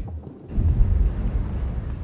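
Small footsteps patter quickly across a hard floor.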